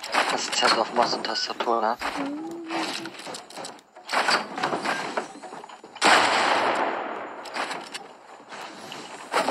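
Wooden walls snap into place with sharp clacks.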